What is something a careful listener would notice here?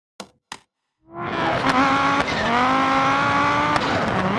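A rally car engine roars loudly and revs up through the gears.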